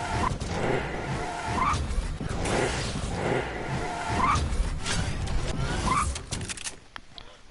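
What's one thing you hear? A glider whooshes through the air.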